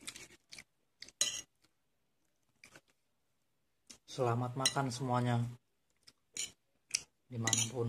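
A spoon scrapes against a plate.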